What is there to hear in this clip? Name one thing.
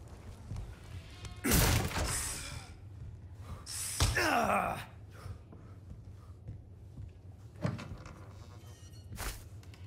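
Footsteps thud on a creaking wooden floor.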